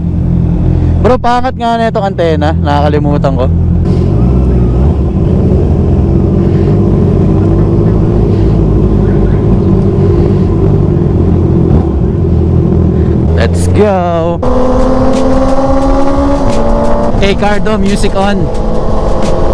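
A motorcycle engine revs up sharply several times.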